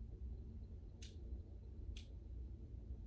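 A lamp switch clicks.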